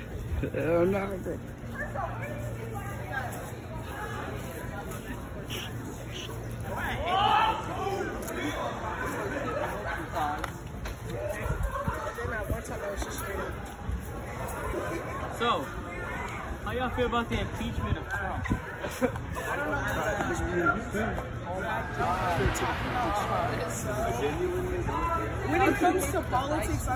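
Young men and boys talk and chatter close by outdoors.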